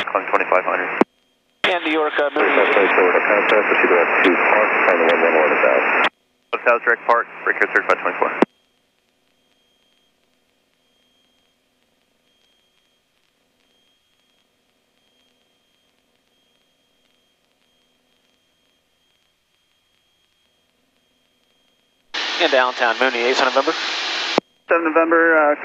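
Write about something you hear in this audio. A man talks calmly over a headset intercom.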